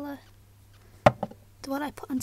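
A small glass bottle knocks against a hard surface.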